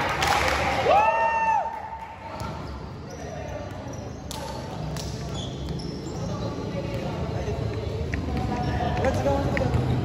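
Young men shout and call to each other across a large echoing court.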